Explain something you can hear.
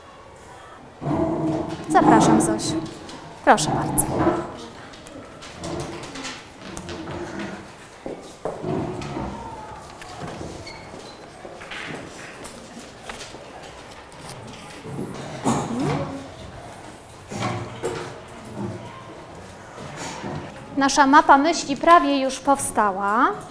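A woman speaks clearly to a group of children.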